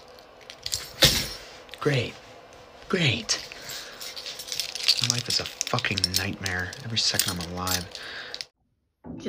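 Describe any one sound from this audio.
A young man groans and grunts in frustration nearby.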